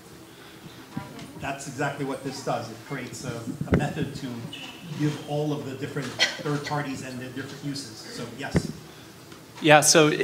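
A middle-aged man speaks with animation into a microphone in a hall.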